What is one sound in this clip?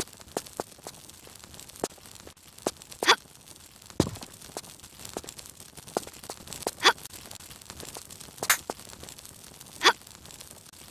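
Footsteps tap on a hard floor in a small, echoing space.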